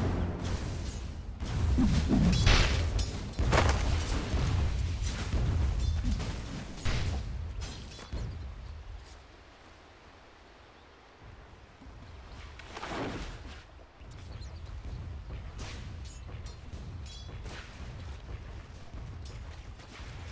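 Spells burst and whoosh in a noisy video game battle.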